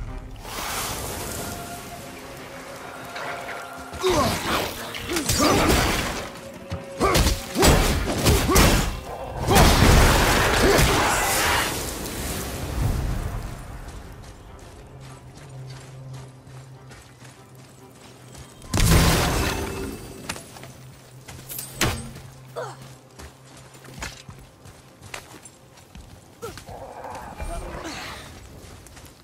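Footsteps crunch on snow and dirt.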